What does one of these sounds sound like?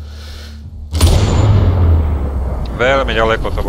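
A rifle shot booms and echoes.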